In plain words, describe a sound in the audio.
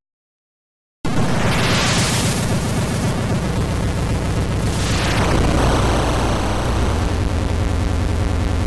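A castle crumbles with a loud, steady, noisy rumble.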